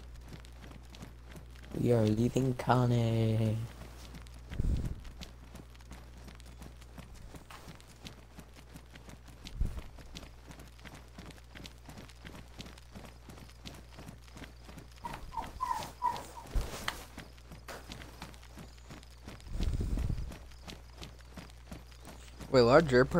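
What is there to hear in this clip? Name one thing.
Footsteps tap steadily on an asphalt road.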